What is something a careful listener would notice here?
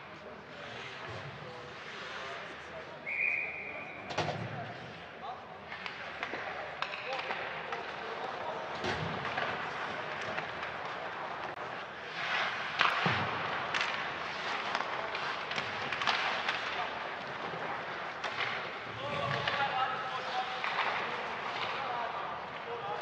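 Skates scrape and hiss across ice in a large echoing arena.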